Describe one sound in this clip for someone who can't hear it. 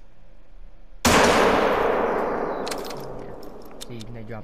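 A rifle fires a single loud shot that echoes and rolls away.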